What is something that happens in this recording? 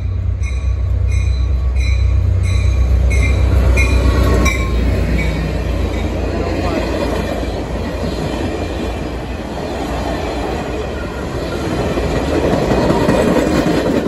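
Train wheels clatter and roar on the rails as the cars rush past.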